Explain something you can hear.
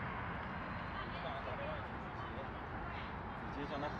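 Footsteps tap on paving as a man walks past close by.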